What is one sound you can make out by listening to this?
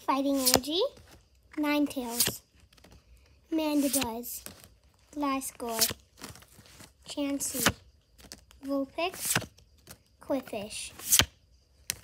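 Trading cards slide against each other in a hand.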